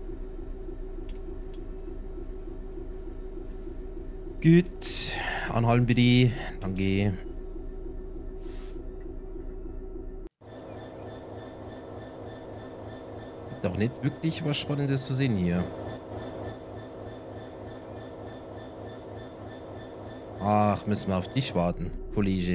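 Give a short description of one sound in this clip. A diesel locomotive engine hums and rumbles steadily.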